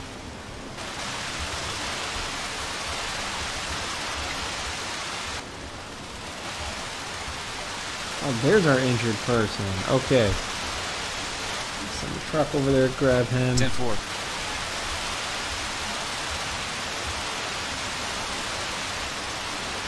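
A fire crackles and roars.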